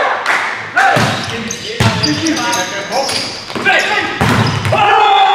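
A volleyball is struck hard with a thump.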